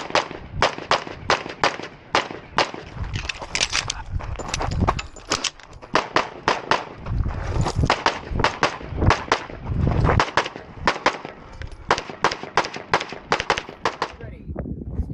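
A pistol fires rapid shots outdoors, close by.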